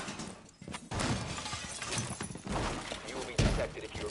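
A wooden barricade splinters and breaks.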